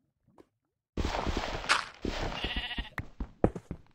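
A pickaxe chips at stone in quick knocks.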